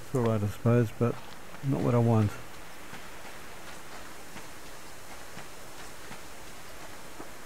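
Footsteps brush through grass at a steady walking pace.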